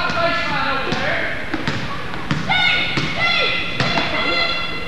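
A basketball bounces on a wooden court floor.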